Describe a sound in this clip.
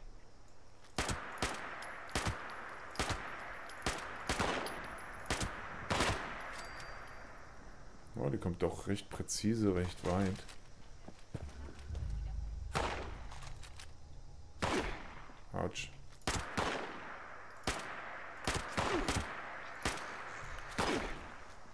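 Gunshots fire in sharp single bursts, one after another.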